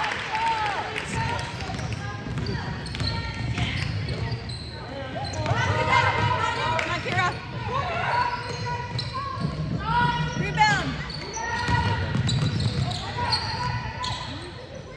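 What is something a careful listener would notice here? Spectators murmur in a large echoing gym.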